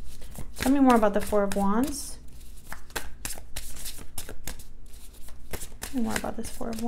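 Playing cards riffle and snap as a deck is shuffled by hand.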